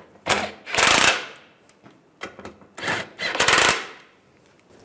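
A cordless impact driver whirs in short bursts.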